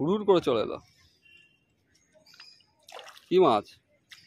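A fish splashes at the water's surface.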